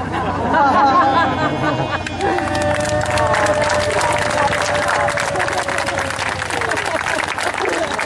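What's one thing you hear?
Men shout and whoop outdoors.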